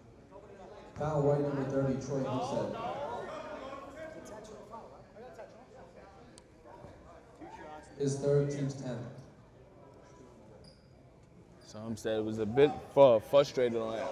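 Men in the crowd shout and cheer loudly in an echoing gym.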